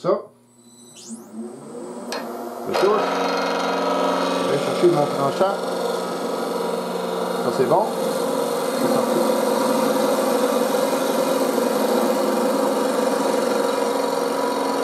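A lathe motor whirs steadily.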